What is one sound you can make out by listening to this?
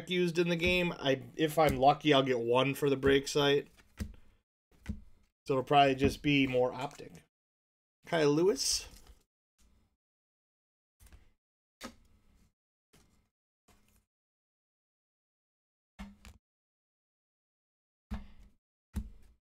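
Trading cards rustle and slide between fingers.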